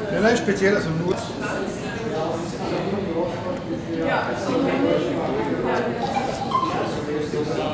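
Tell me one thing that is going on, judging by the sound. A woman talks quietly nearby.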